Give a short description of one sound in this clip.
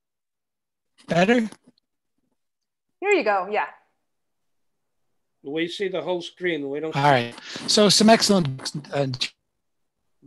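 Men talk over an online call, in short bursts with pauses.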